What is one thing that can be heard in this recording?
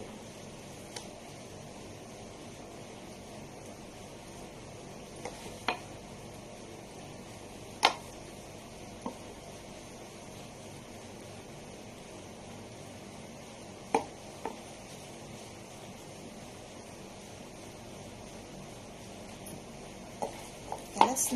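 Fingers tap and scrape against a plastic cup.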